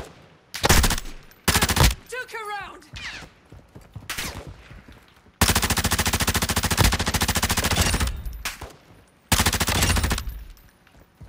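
A rifle fires in short bursts and a long rapid burst.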